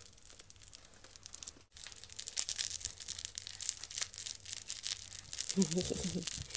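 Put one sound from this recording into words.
A plastic toy crinkles and rattles close by.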